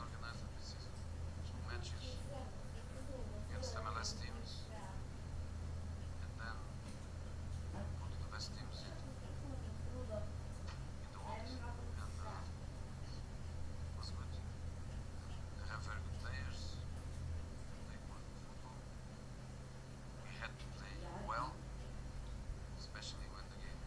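A middle-aged man speaks calmly and slowly into a microphone.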